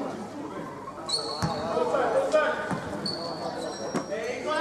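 Basketball shoes squeak sharply on a hard court.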